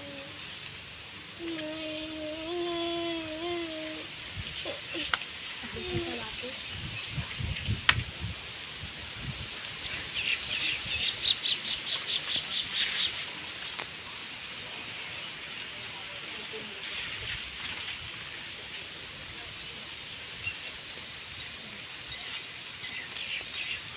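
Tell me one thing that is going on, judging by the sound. Several adult women chatter and call out close by.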